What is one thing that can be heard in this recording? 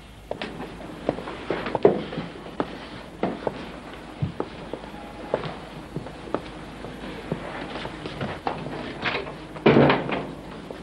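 Footsteps sound on a floor indoors.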